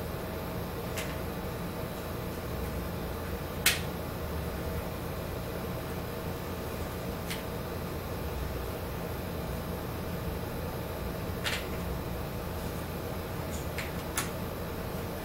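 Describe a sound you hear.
Puzzle pieces tap on a wooden table.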